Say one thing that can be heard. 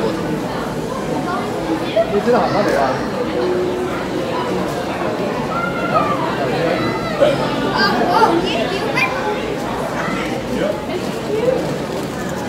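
People chatter in the background.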